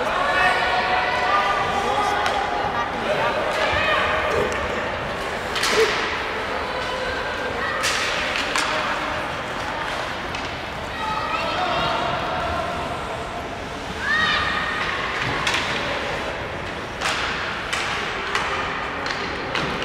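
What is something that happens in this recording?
A crowd of spectators talks and murmurs in a large echoing arena.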